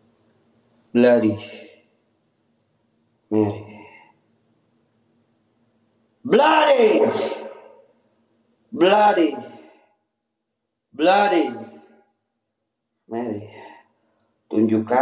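A young man speaks in short, animated bursts close by, in a small echoing room.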